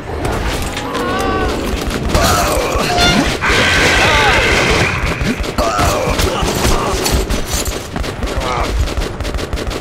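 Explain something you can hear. A creature snarls and shrieks up close.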